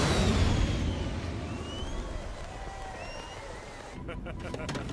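A crowd cheers and shouts outdoors.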